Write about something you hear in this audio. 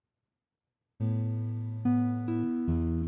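A keyboard plays sustained chords.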